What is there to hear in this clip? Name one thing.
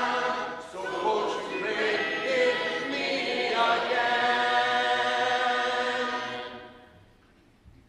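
A man sings a slow hymn through a microphone.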